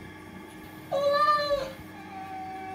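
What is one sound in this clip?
A cat meows briefly.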